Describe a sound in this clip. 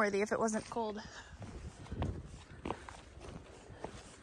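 Footsteps crunch on a dirt trail.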